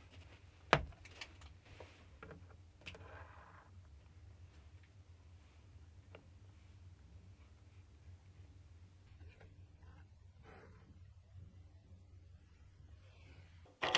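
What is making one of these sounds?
Metal parts click and tap as a tool holder is adjusted.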